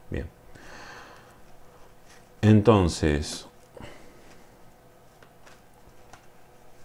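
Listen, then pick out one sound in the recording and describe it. Playing cards riffle and slap softly as hands shuffle a deck.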